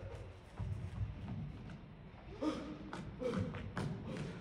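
Feet thud and land on a wooden stage.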